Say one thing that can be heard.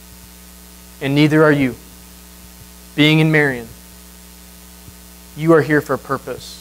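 A young man speaks calmly into a microphone, in short phrases.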